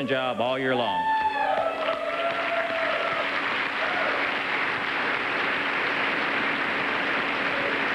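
A large crowd applauds and cheers in a large echoing hall.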